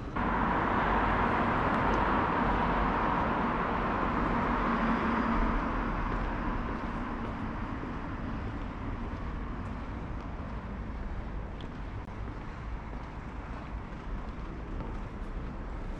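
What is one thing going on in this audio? Wheels roll over paving stones with a steady rumble.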